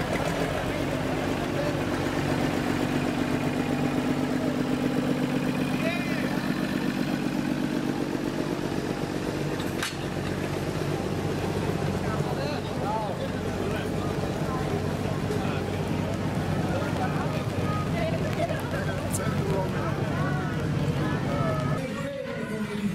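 A tractor engine chugs steadily nearby.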